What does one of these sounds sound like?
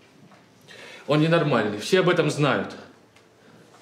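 A man speaks calmly and firmly.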